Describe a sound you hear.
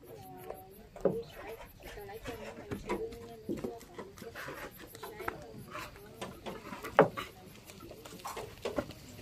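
Wooden boards knock against each other.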